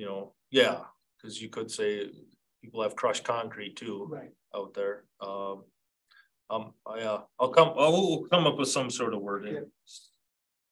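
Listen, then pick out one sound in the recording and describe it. A man speaks calmly into a meeting microphone in a quiet room.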